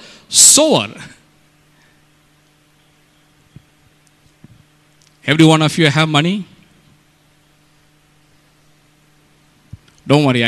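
A middle-aged man preaches forcefully into a microphone in short bursts, with pauses between.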